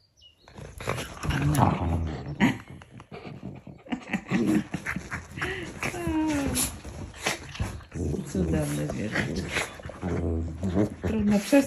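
Small dogs growl and snarl playfully up close.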